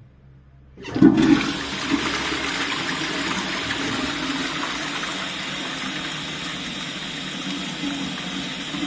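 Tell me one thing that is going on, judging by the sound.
A toilet flushes with loud rushing, swirling water.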